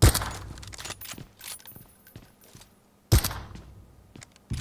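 A rifle fires single loud shots that echo away.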